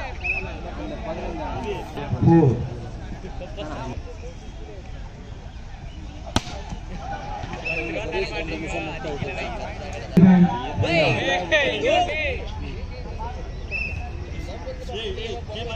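Young men call out and shout to each other outdoors.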